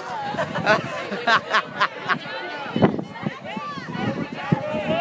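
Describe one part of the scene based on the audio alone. A crowd of young men and women chatter and call out outdoors.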